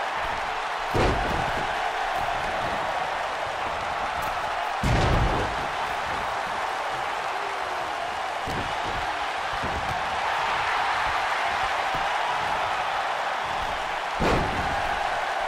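Bodies slam heavily onto a wrestling ring mat.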